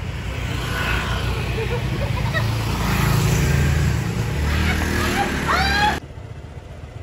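A motorbike engine hums close by.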